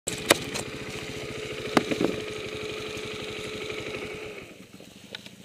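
A dirt bike engine idles close by with a rapid, throbbing putter.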